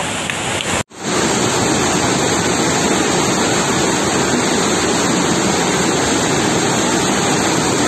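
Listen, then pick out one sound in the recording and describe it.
Floodwater rushes and roars loudly outdoors.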